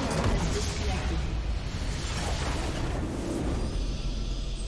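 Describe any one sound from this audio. A loud game explosion bursts and crackles.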